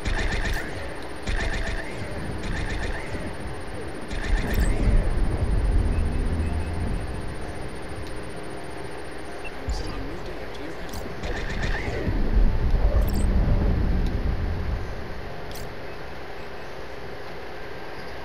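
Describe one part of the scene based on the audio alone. A low steady engine hum drones throughout.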